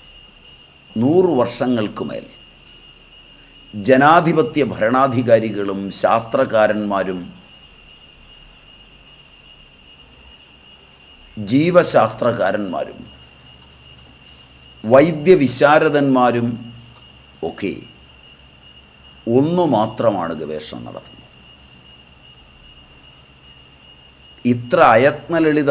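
An elderly man speaks calmly and slowly, close by, in short bursts with pauses.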